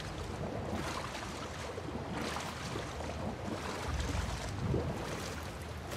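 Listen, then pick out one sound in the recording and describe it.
Water sloshes and splashes around wading legs.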